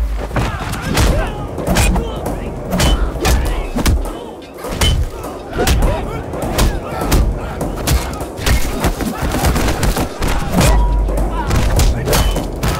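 A crowd of men shouts and yells.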